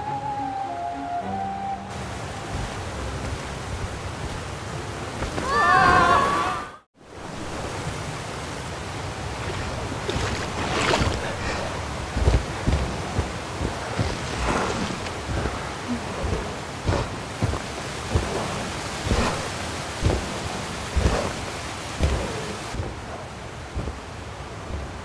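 A waterfall rushes and splashes.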